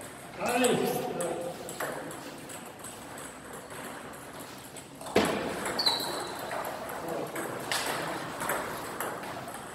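A table tennis ball clicks back and forth off paddles and a table in an echoing room.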